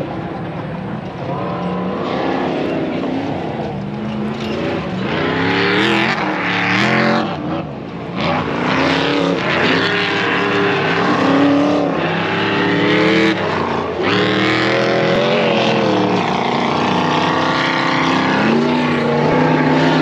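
Off-road trucks' engines roar and rev in the distance.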